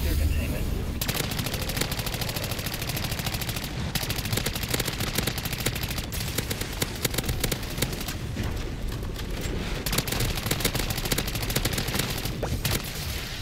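Rapid gunfire crackles from a game.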